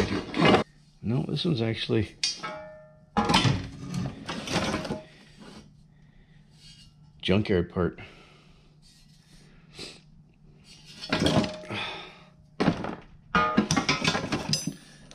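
Heavy metal parts clank and scrape against each other.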